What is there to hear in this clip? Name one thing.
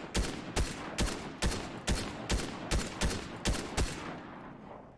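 A rifle fires a quick series of shots that ring out.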